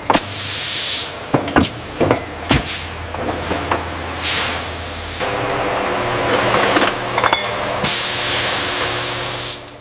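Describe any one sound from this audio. Glass bottles clink against each other on a conveyor.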